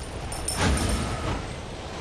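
A bright chime rings out.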